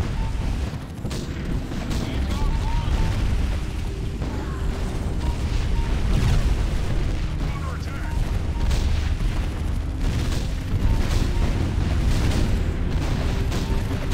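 Explosions boom and rumble in a game.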